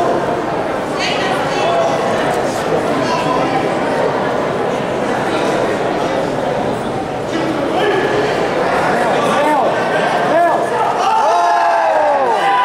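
Young men shout sharply while fighting.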